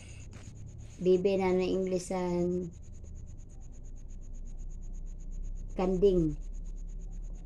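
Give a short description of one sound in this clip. A little girl sings and talks close by.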